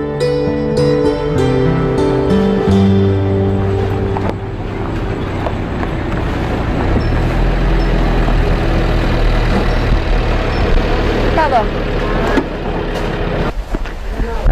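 A small truck engine rumbles as the truck drives slowly closer.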